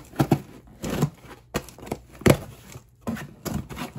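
Fingernails tap and scratch on a cardboard box.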